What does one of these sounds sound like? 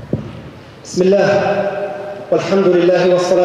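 A man speaks calmly into a microphone, echoing through a large hall.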